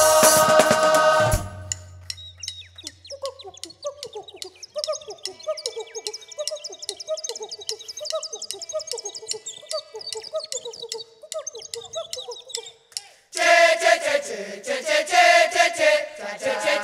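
Trumpets play loudly.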